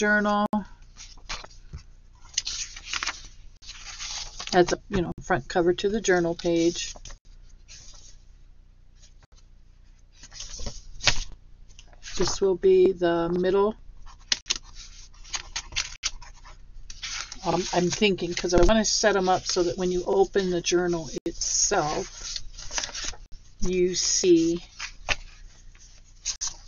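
Sheets of paper rustle and flap as they are handled and shuffled.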